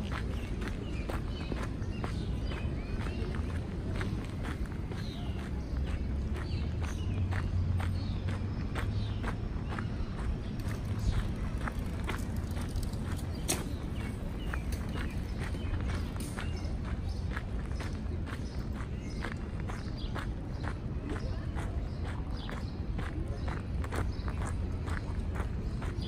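Footsteps crunch steadily on gravel.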